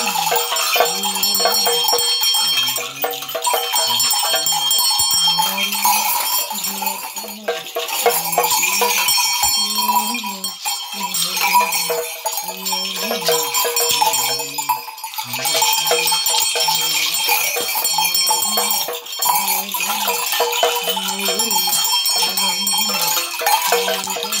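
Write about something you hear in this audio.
An elderly man chants in a low, steady voice close by.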